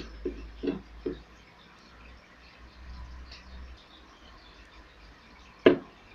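A hand knocks and taps on a plastic case.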